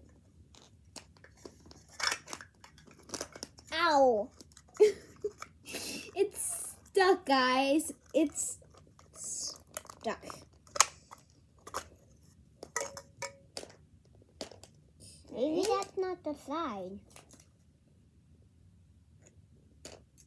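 Paper crinkles and rustles in hands.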